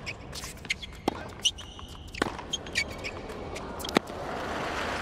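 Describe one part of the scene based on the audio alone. A tennis ball is struck back and forth with rackets, with sharp pops.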